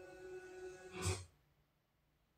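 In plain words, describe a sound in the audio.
A short whooshing burst sounds from a television.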